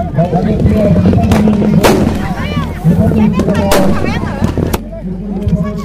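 Firecrackers bang and crackle in quick bursts outdoors.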